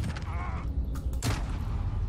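Rapid gunfire bursts from a game.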